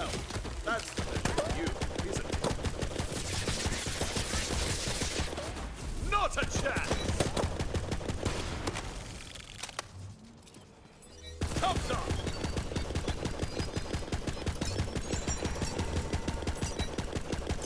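Rapid automatic rifle fire crackles in a video game.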